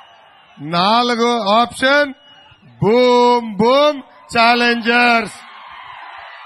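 A young man shouts slogans through a loudspeaker.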